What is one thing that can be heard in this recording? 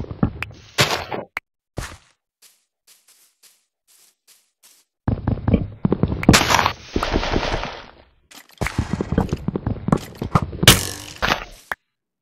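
Leaves rustle and crunch as they are broken apart in a game.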